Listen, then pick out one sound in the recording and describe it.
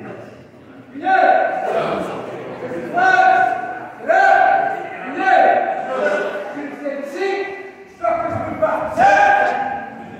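A kick thuds against a padded strike shield.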